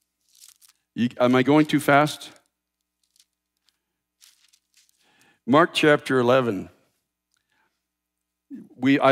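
A man speaks calmly into a headset microphone, in short phrases with pauses.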